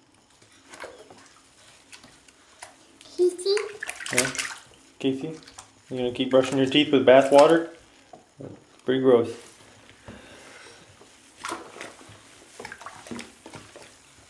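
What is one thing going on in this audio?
Water splashes gently in a bathtub.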